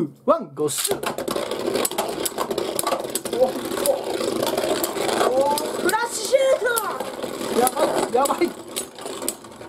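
Spinning tops clash and click against each other.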